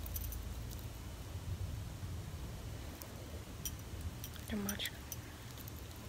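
Metal jewellery beads clink and jingle softly.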